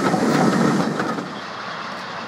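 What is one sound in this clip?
Train carriages rumble past close by.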